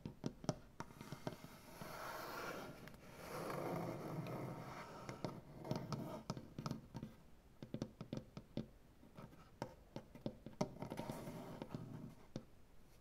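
Fingertips scratch and rub across a wooden surface.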